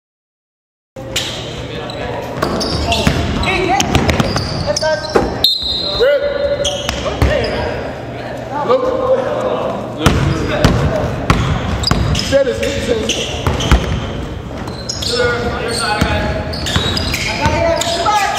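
Voices of players and spectators echo through a large gym.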